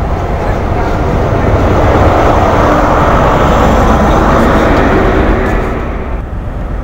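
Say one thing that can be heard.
A diesel engine roars loudly as the locomotive passes.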